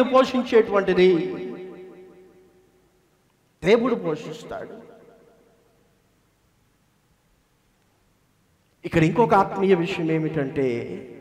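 A young man speaks steadily into a microphone, his words echoing loudly through a large hall.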